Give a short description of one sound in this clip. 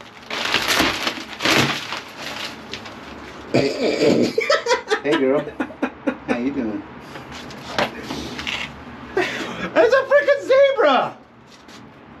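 Wooden panels knock and scrape against each other.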